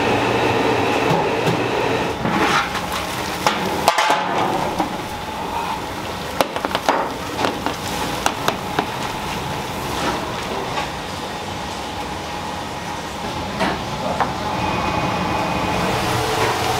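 Water boils noisily with a steady rumble.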